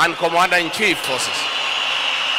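A man speaks loudly into a microphone through loudspeakers.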